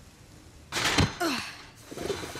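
A young man lands with a thud on pavement.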